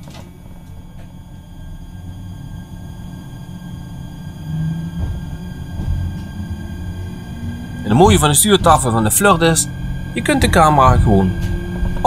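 A train rolls along the rails, slowly picking up speed.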